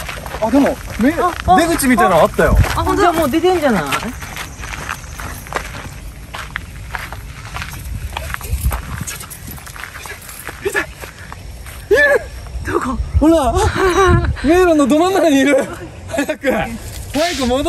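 A young man talks excitedly nearby.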